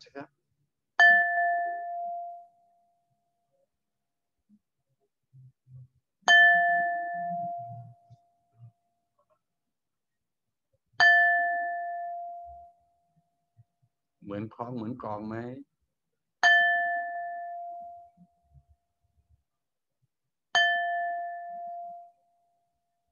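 A singing bowl is struck and rings out, slowly fading.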